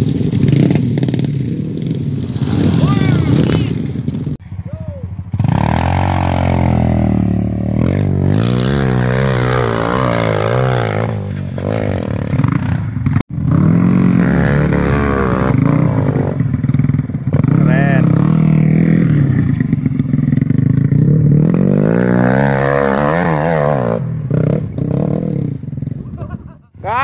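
A dirt bike engine revs loudly up and down.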